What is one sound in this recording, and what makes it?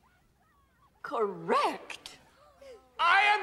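An elderly woman laughs loudly.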